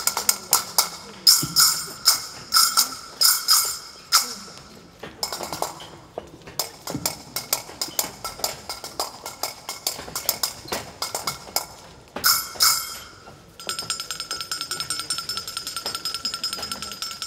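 Frame drums beat a steady, lively rhythm.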